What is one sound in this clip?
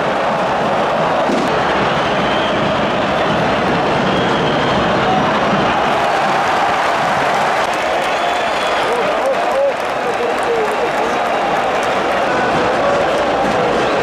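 A huge stadium crowd chants and roars loudly throughout.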